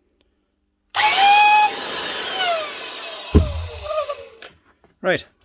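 A router motor whines loudly, then winds down.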